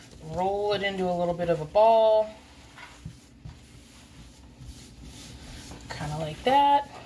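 Dough squishes and thumps softly as hands knead it on a counter.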